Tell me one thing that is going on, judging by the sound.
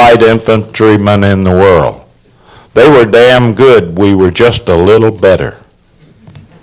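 An elderly man speaks with animation close to a microphone in a large room.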